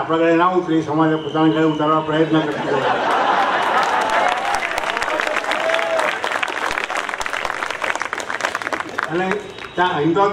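An elderly man speaks calmly into a microphone over a loudspeaker.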